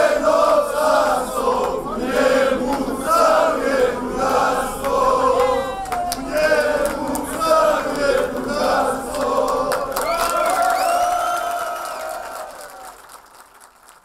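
A crowd of people talk and chant outdoors.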